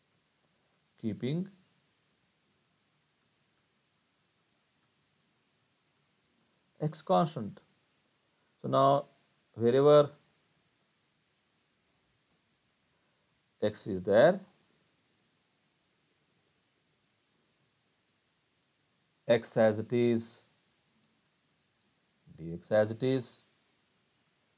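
An older man speaks calmly in short phrases through a microphone, as on an online call.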